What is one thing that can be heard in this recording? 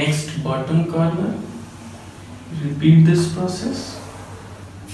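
A man speaks calmly and clearly, as if explaining.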